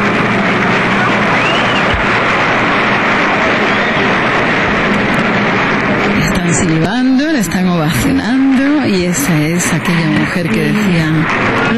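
An older woman speaks with animation into a microphone, close by.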